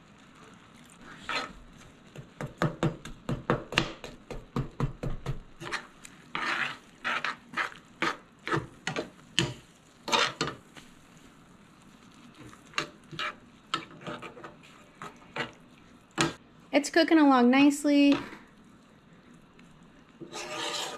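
A metal spoon scrapes and stirs thick food in a pan.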